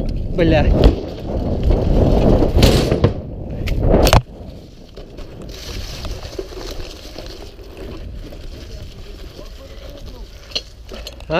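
Bicycle tyres roll and rumble over pavement and grass.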